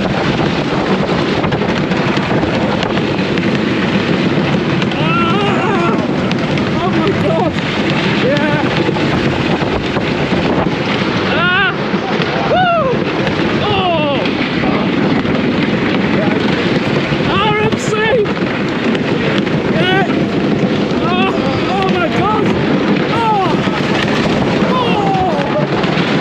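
Wind rushes hard past a microphone.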